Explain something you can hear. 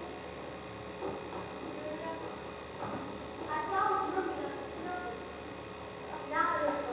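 A young woman speaks on a stage, heard from a distance in a hall.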